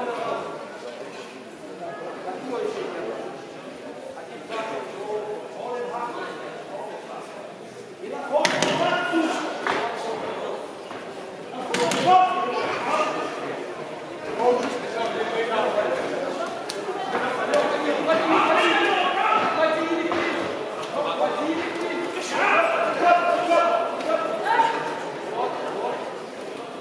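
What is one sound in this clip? A crowd in a large echoing hall shouts and cheers.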